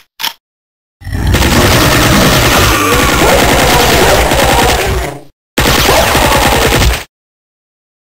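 Submachine guns fire in rapid bursts.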